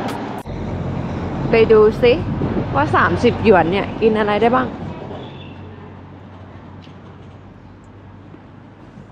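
Footsteps walk across pavement outdoors.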